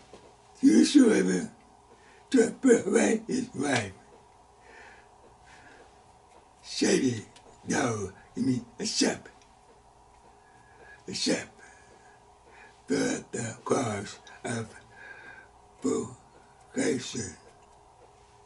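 An elderly man speaks calmly and deliberately into a close microphone, pausing between phrases.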